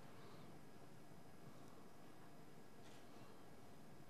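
A brush swishes softly across paper.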